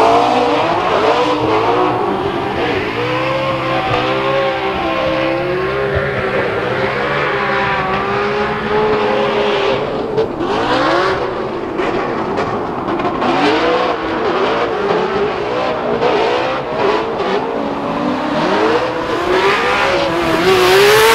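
Car engines roar and rev up and down at high pitch.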